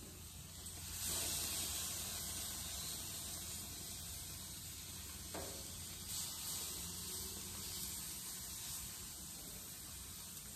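Food sizzles on a hot grill.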